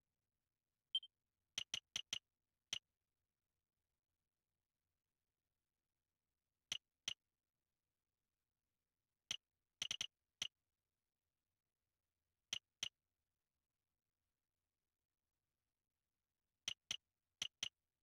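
Soft menu blips tick now and then.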